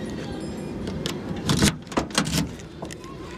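A metal bolt clicks and scrapes as a hand turns it.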